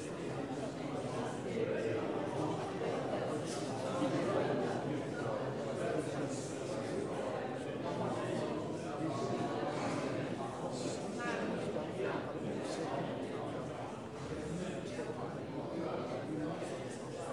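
A crowd of men and women murmur and chatter in a large echoing hall.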